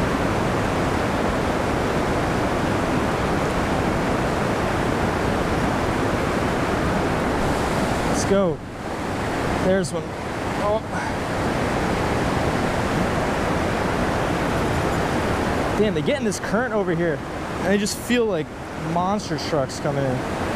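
Fast water rushes and churns loudly nearby.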